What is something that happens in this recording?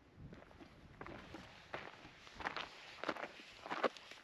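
Hiking boots crunch on a gravel trail.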